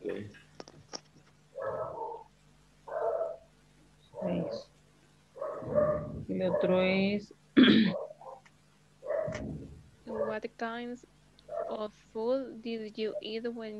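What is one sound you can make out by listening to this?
A person speaks over an online call, in short phrases with pauses.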